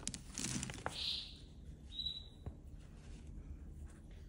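Fingers crumble a dry pellet with soft gritty crunches.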